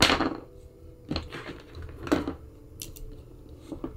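A small plastic part clicks and scrapes as it is screwed onto a microphone.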